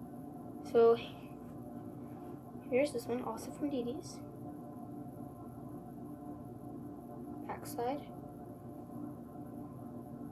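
Fabric rustles as a shirt is handled.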